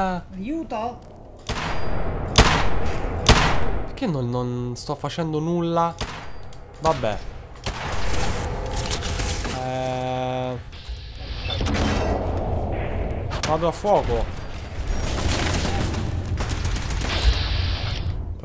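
Gunshots fire in short bursts, with loud sharp cracks.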